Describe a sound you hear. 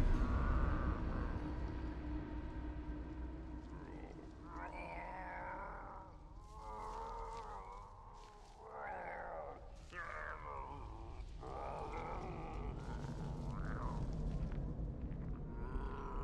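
Leafy bushes rustle as someone creeps through them.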